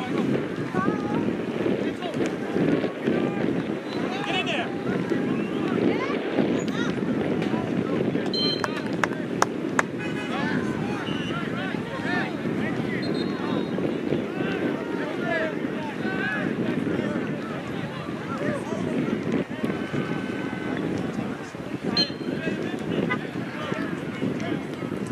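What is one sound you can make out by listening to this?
A crowd of spectators chatters and calls out across an open field.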